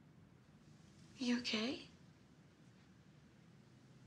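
A second woman speaks calmly, close by.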